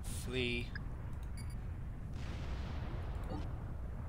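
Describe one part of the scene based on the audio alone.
Laser weapons fire with sharp zaps.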